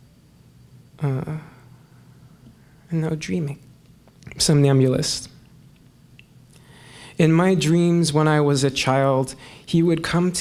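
A young man sings into a close microphone in short phrases with pauses between them.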